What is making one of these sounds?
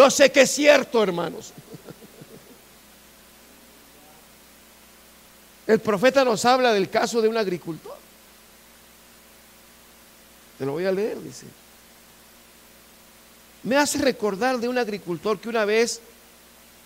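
A middle-aged man speaks with animation through a headset microphone, in short bursts with pauses.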